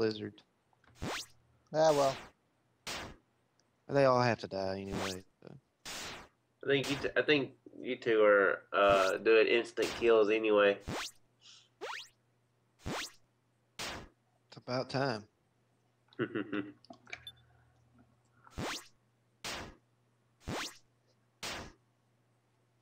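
Short retro video game sound effects blip and thud during a battle.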